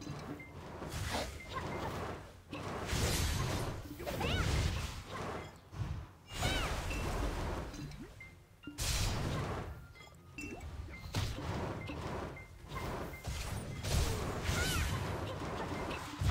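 Magic spells burst and whoosh in bursts.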